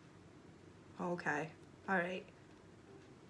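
A woman speaks calmly and briefly, close by.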